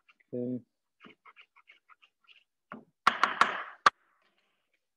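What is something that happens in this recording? A knife chops herbs on a cutting board with quick taps.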